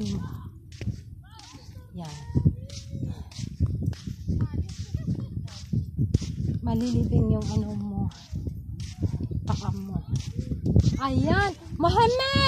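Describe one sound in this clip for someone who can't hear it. Footsteps crunch steadily on dry sand.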